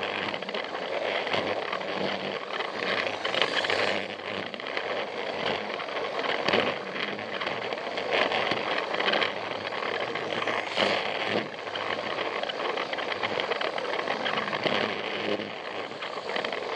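A small battery toy train whirs and rattles along a plastic track.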